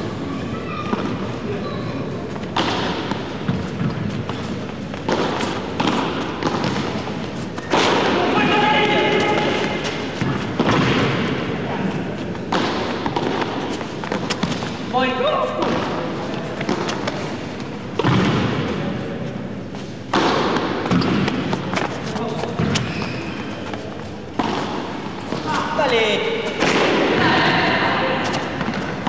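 A racket strikes a ball with sharp pops, back and forth.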